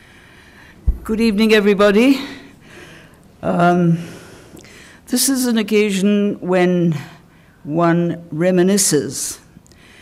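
An elderly woman speaks slowly and deliberately into a microphone.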